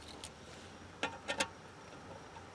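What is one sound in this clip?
A key turns in a lock with a click.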